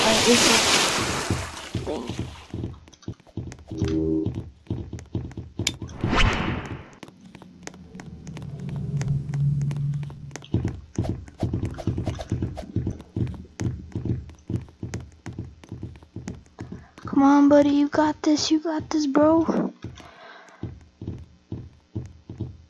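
Quick footsteps thud steadily across a floor.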